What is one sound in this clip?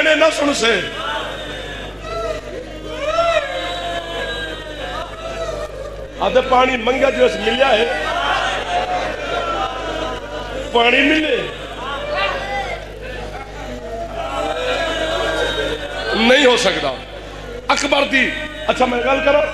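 A young man speaks with passion into a microphone, heard through loudspeakers in an echoing space.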